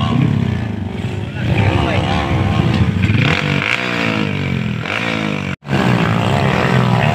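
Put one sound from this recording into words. Dirt bike engines rev hard and whine up and down nearby.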